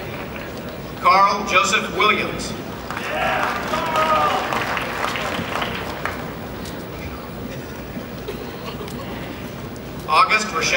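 A man speaks briefly in a large echoing hall.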